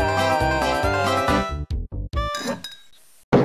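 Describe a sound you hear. A cheerful electronic game tune plays.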